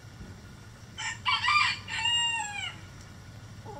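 A hen squawks loudly nearby.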